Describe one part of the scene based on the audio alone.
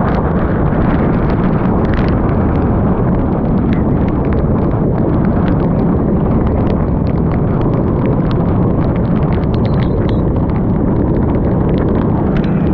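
Strong wind roars loudly and steadily.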